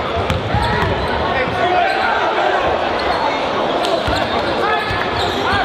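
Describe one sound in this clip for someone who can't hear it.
A large crowd cheers and chatters in an echoing gym.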